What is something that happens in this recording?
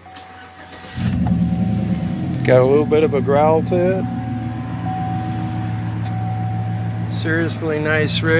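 An engine starts and idles with a steady low rumble.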